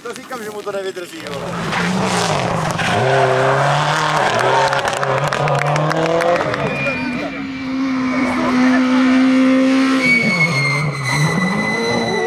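Tyres skid and scrabble on loose gravel.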